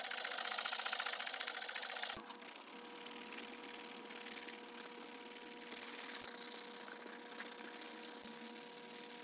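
Sandpaper rubs back and forth on wood with a rasping hiss.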